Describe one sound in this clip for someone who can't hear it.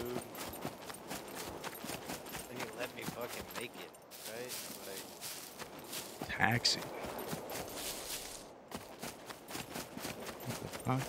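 Footsteps rustle steadily through dry grass.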